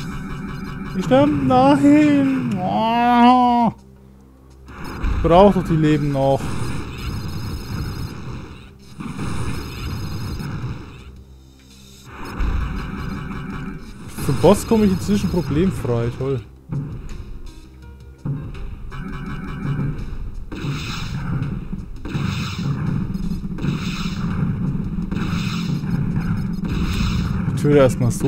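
Video game laser shots zap and whine in quick bursts.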